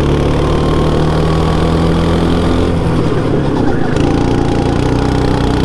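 A go-kart engine buzzes loudly up close, its pitch shifting as it takes a corner.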